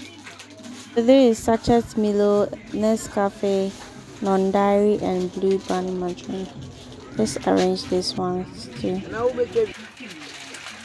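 A woman sings.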